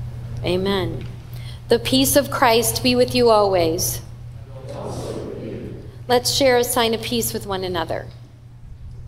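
A woman sings into a microphone, close and clear.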